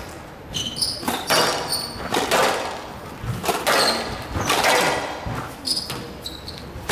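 A squash ball smacks off rackets and walls in a hard, echoing rally.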